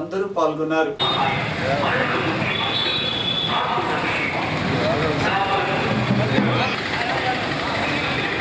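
A crowd walks and chatters outdoors in a noisy street.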